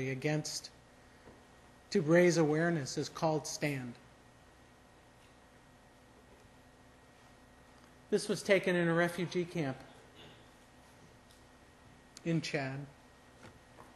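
A man speaks calmly into a microphone, with long pauses between phrases.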